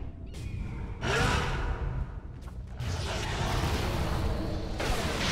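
Game spells crackle and blast during a fight.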